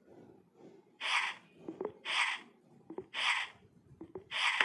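Game blocks land with short whooshing thuds.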